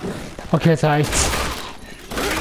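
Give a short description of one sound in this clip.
A gunshot rings out close by.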